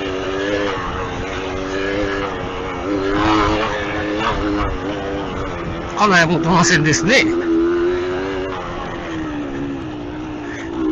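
A motorbike engine hums steadily, rising and falling slightly in pitch.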